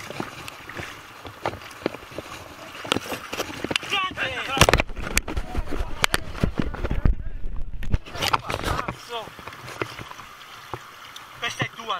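A river rushes and gurgles close by.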